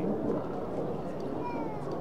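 Jet planes roar high overhead.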